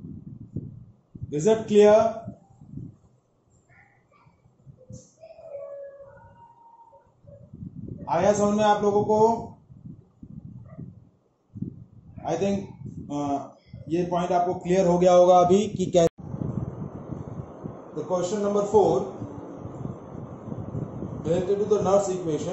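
A man speaks calmly, close to a microphone, as if explaining.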